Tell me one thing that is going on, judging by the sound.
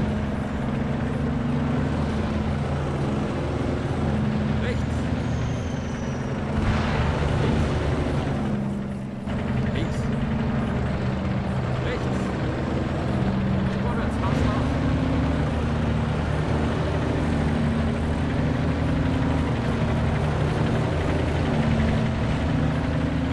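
Tank tracks clatter and squeak over grass.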